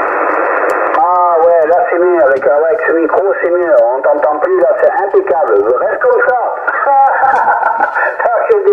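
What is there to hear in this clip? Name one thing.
A man's voice talks through a radio loudspeaker, thin and crackly.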